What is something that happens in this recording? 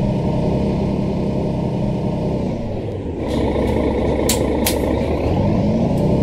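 A bus engine hums steadily and rises as the bus pulls away.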